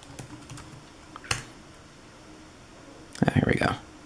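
A finger taps on a touchscreen.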